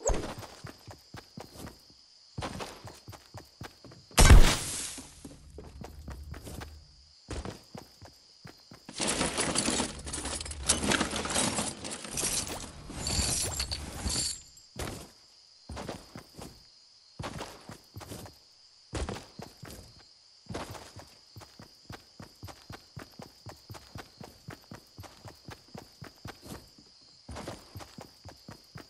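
Footsteps patter quickly over grass and wooden floors.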